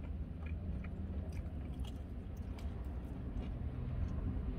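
A man chews food with crunching bites close by.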